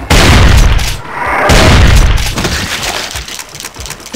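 A gun fires loud blasts.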